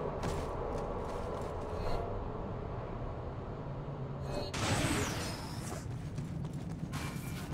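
Heavy footsteps clang on a metal grating.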